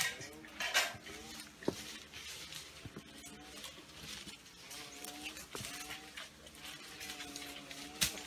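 Twigs snap as fruit is picked.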